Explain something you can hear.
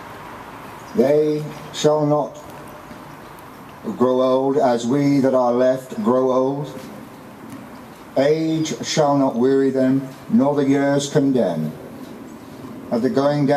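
An elderly man reads out calmly through a microphone and loudspeaker, outdoors.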